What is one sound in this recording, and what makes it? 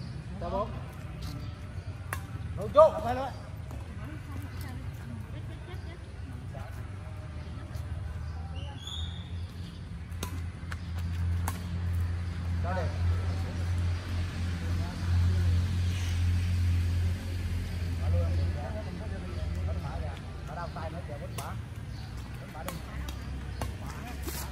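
Badminton rackets smack a shuttlecock back and forth outdoors.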